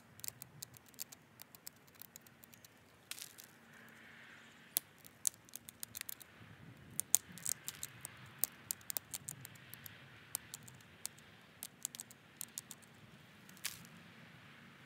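Sharp little clicks and snaps come from stone being flaked.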